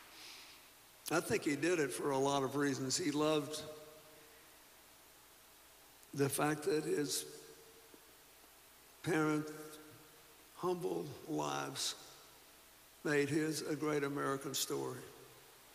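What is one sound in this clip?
An elderly man speaks slowly and calmly into a microphone, heard over loudspeakers with pauses between phrases.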